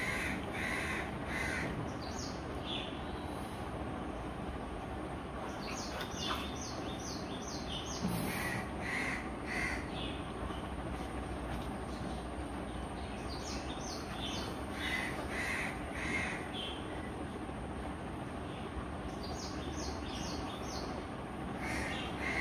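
A dog growls softly while play-biting another dog.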